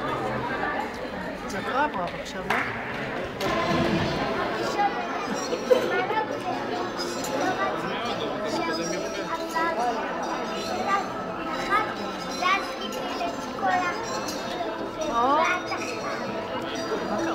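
A crowd of children chatters throughout a large echoing hall.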